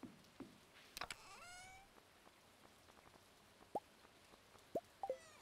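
Short electronic blips sound as game menu items are picked.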